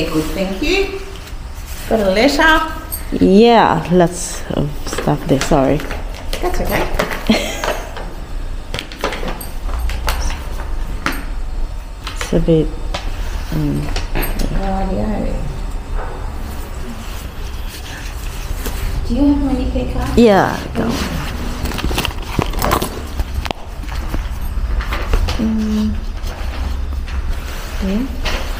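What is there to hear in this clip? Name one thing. A young woman talks and laughs close to the microphone.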